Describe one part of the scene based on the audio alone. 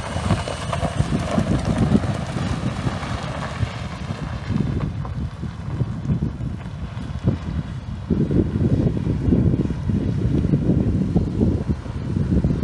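A pickup truck engine rumbles as the truck drives away.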